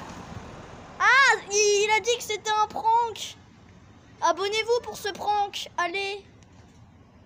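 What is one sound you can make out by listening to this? A boy speaks close to the microphone with animation.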